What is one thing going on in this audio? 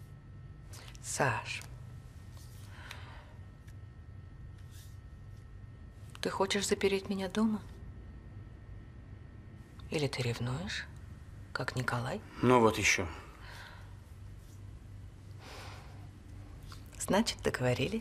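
A young woman speaks softly and hesitantly, close by.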